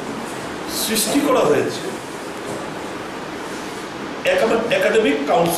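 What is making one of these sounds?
A middle-aged man speaks steadily into a close microphone, with pauses.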